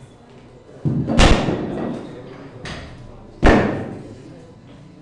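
Metal weight plates clank loudly against a barbell, ringing in an echoing room.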